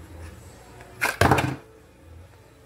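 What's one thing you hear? A knife slides out of a stiff sheath with a scrape.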